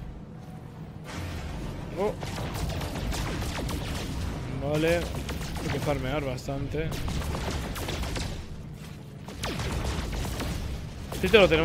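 A spaceship engine hums low and steady.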